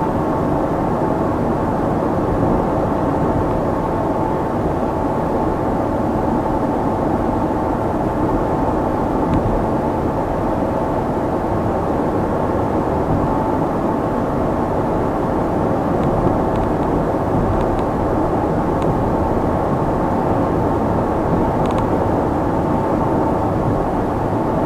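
A car drives steadily along a road, with a low rumble of engine and tyres heard from inside the car.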